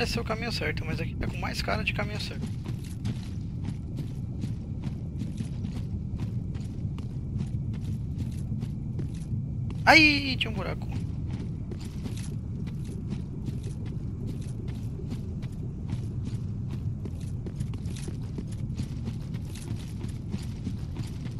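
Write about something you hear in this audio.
Armoured footsteps clank and crunch steadily over rough ground.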